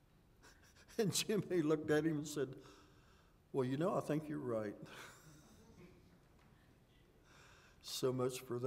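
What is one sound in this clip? An older man preaches with feeling into a microphone, pausing between phrases, in a room that echoes slightly.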